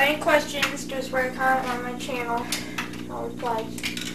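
A metal scooter rattles as it is lifted and moved.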